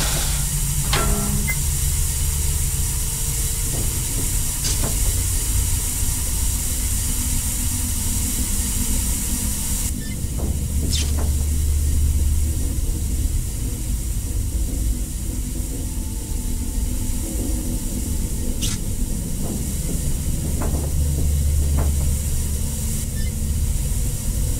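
Steam hisses from a vent.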